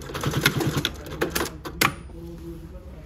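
Fabric rustles and slides across a smooth table.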